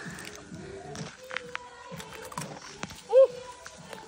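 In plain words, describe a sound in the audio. A young woman bites into a crunchy fruit.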